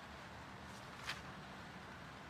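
A book page turns with a soft rustle.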